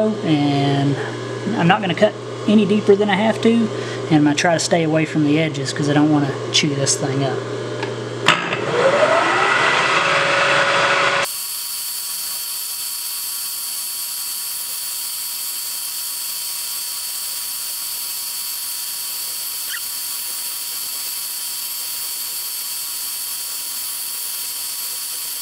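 A small milling machine spindle whirs steadily.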